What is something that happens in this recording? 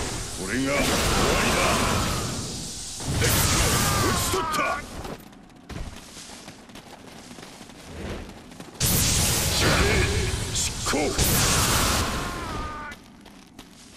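A spear swooshes through the air with loud rushing blows.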